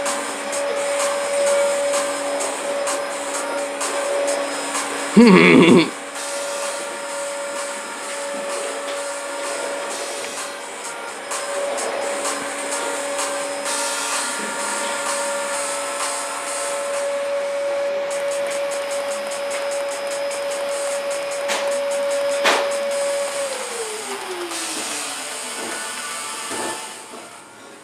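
Cheerful electronic game music plays from a small handheld speaker.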